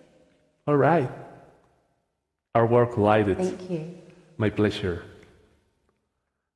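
A man sings through a microphone with an echoing effect.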